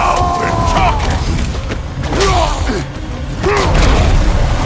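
Heavy blows thud during a fight.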